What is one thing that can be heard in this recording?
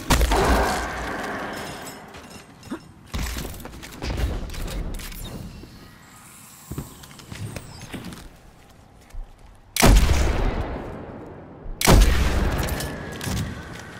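Gunshots from a game fire and boom, with ringing echoes.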